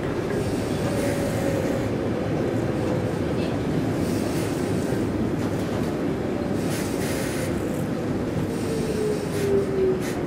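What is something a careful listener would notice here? Train wheels squeal with a high, slowly falling whine.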